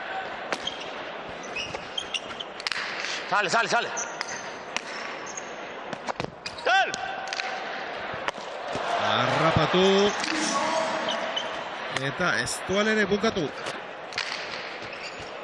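A hard ball smacks against a wall and bounces on the floor in a large echoing hall.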